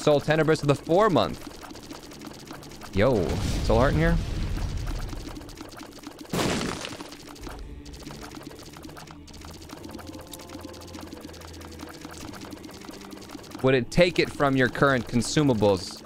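A man talks with animation close to a microphone.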